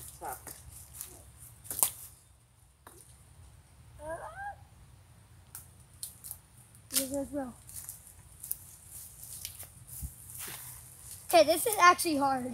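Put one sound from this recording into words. Dry leaves rustle and crackle underfoot.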